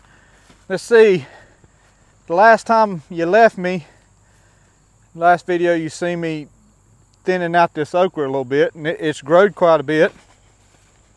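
A middle-aged man speaks calmly and close into a clip-on microphone.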